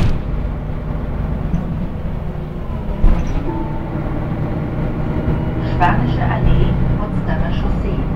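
Loose fittings rattle inside a moving bus.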